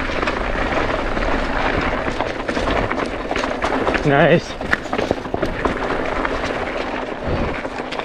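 A bicycle rattles and clatters as it bumps over rocks.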